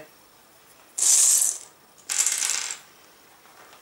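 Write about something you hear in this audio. Small pieces of dry pasta rattle and clatter onto a table.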